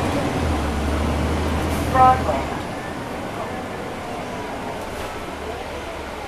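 A bus engine rumbles low and steady inside the cabin.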